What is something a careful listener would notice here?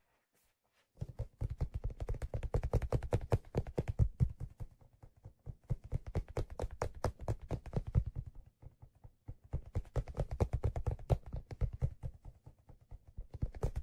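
Fingers scratch and rub a leather case close up.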